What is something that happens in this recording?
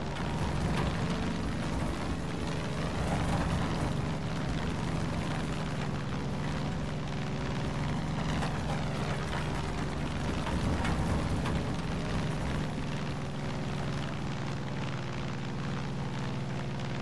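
A propeller plane's engine drones steadily up close.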